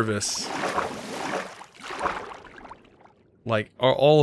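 Water swishes and bubbles around a swimmer.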